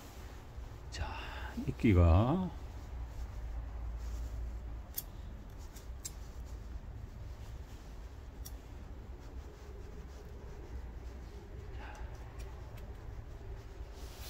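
Tweezers scrape and tap softly on soil.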